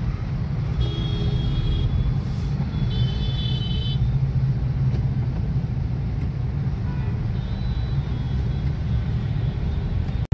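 Car horns honk in heavy traffic.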